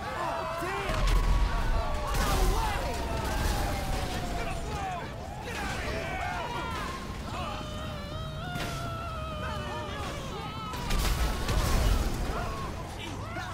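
A car explodes with a deep boom.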